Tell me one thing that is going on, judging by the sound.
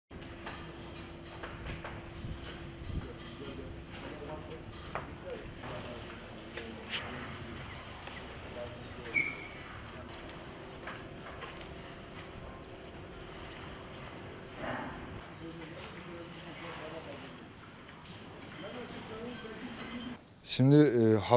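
Cattle shuffle and move about in a barn.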